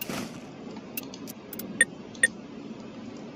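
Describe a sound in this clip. Short interface clicks and beeps sound as a menu opens and items are taken.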